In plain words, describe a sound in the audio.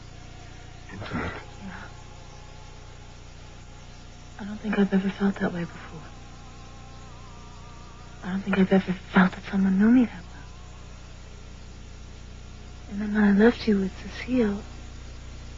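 A man speaks softly, close by.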